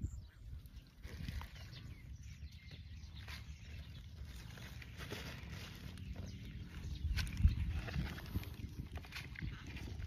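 Stalks of vegetables rustle and thud as a hand drops them into a plastic bowl.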